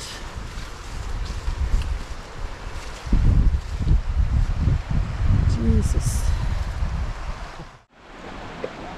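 A river rushes nearby.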